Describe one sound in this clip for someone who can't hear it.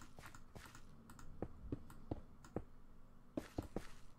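A stone block is placed with a soft thud in a video game.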